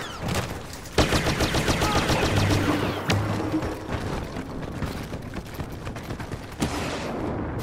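Blaster pistols fire bursts of laser shots.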